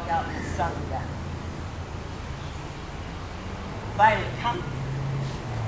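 A woman gives short, firm commands to a dog nearby.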